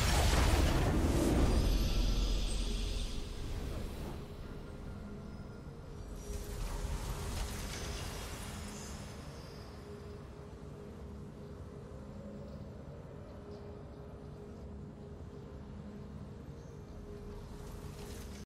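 A triumphant game fanfare swells.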